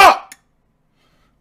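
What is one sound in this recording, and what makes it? A young man lets out a short, loud shout close by.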